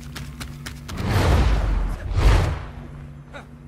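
A game character lands with a heavy whooshing thud.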